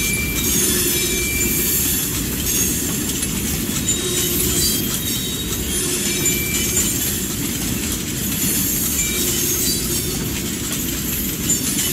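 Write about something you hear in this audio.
Freight cars rumble and clatter past on the rails.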